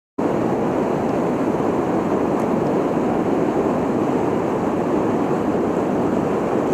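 Rushing water roars loudly and steadily over a weir, outdoors.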